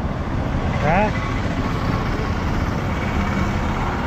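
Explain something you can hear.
Traffic rumbles past on a nearby road.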